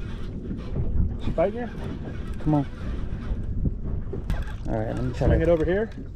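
A fishing reel clicks as its handle is cranked.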